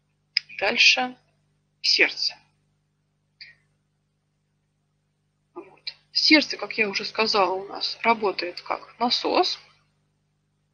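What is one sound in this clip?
A young girl speaks calmly through an online call.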